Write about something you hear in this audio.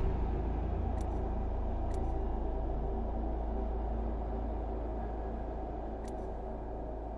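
Short electronic clicks tick now and then.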